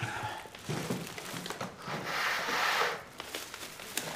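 Plastic bags rustle.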